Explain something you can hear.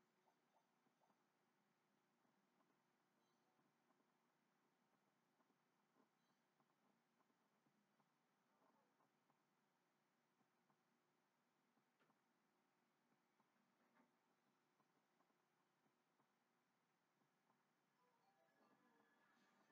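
Light footsteps patter on stone from a video game, heard faintly through a television speaker.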